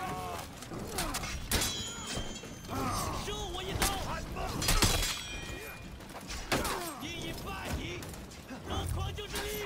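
Steel weapons clash and ring in a melee.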